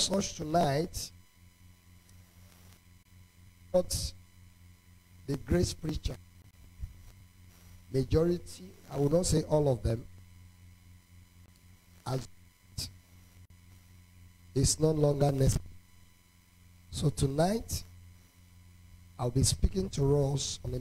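A man speaks slowly and deliberately into a microphone, with long pauses, in a reverberant hall.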